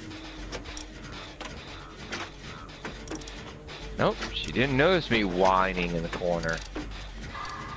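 A generator rattles and clanks as it is repaired.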